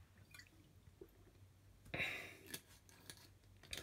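A man drinks from a plastic bottle.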